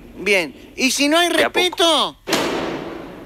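A man speaks briefly and emphatically, close to the microphone.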